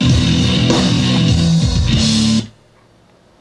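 An electric bass guitar plays loudly, then stops abruptly.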